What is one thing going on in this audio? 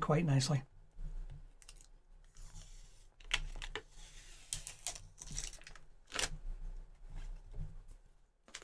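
Plastic film crinkles and rustles as it is peeled off.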